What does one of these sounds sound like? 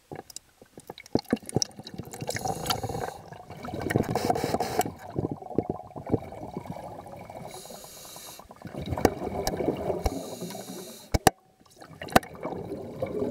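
Water churns and gurgles, muffled underwater.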